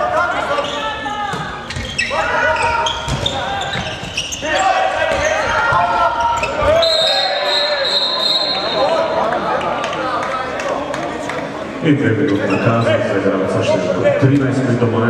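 A crowd chants and cheers in a large echoing hall.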